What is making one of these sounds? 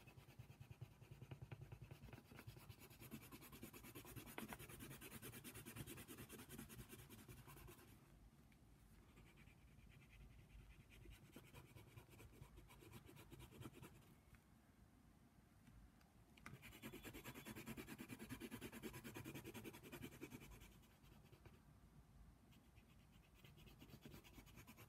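A colored pencil scratches rapidly across paper, close by.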